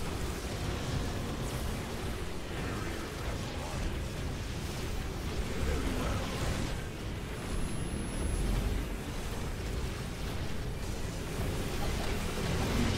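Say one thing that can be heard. Energy blasts boom and rumble.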